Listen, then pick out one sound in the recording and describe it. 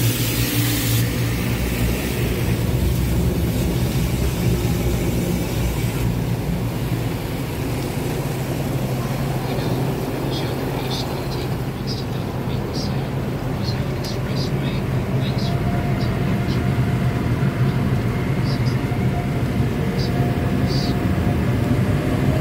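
Water sprays and streams against a car's windscreen.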